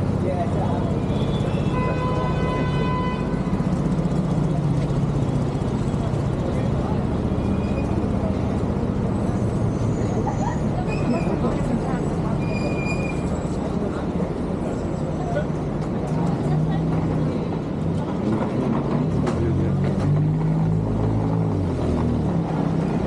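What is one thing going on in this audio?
Traffic hums steadily along a city street outdoors.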